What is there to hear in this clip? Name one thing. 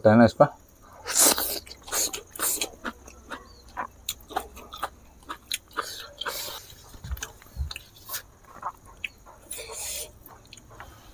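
A man chews food wetly with smacking sounds.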